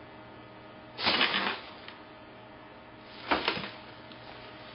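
A plastic dress rustles and crinkles as a woman moves.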